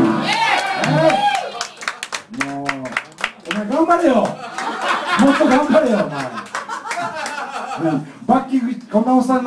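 A band plays loud rock music live on electric guitars.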